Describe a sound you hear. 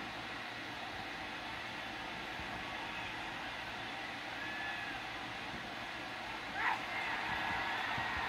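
A crowd roars and cheers steadily in a large arena.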